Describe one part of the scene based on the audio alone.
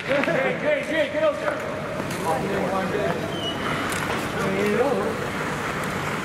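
Young men shout and call out nearby in an echoing rink.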